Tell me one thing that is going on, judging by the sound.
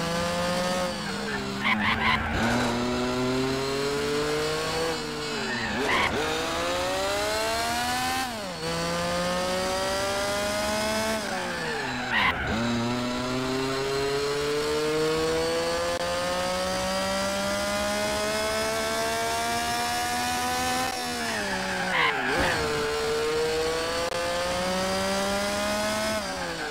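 A racing car engine roars steadily, rising in pitch as it speeds up and dropping sharply at each gear change.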